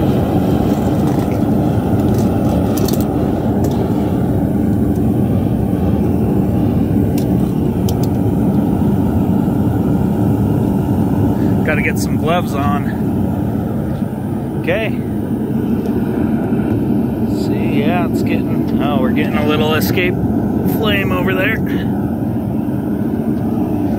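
A gas burner roars loudly and steadily.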